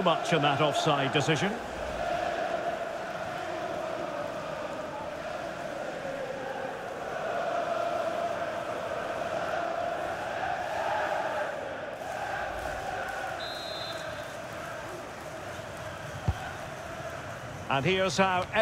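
A large stadium crowd roars and murmurs steadily.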